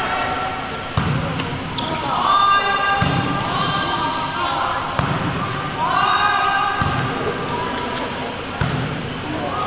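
A volleyball thumps as it is hit, echoing in a large hall.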